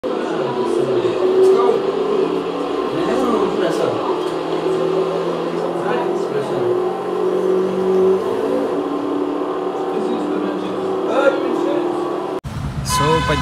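A racing car engine drones steadily through loudspeakers.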